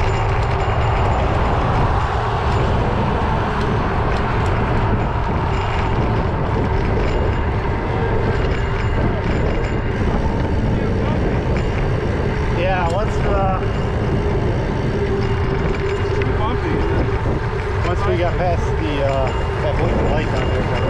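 Tyres roll steadily on a paved road.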